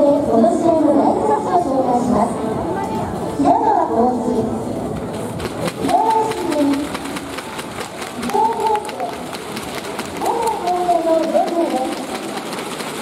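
A crowd chants and cheers in a large echoing hall.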